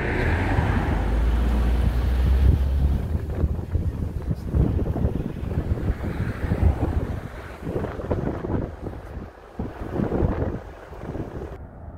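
Tyres roll over a road surface.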